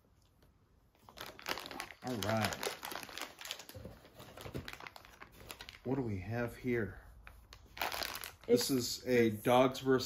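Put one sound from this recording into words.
A plastic wrapper crinkles in a man's hands.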